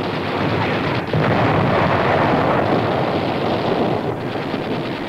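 A large gun fires with a loud blast that rumbles away.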